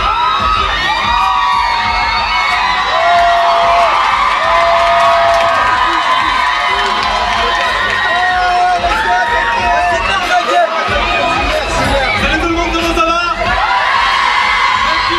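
Loud music with a heavy beat plays over loudspeakers.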